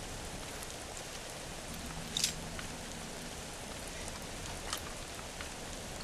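A lock clicks as it is picked.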